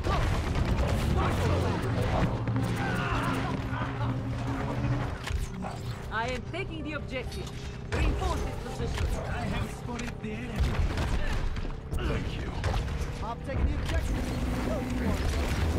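A game's energy beam weapon fires in bursts.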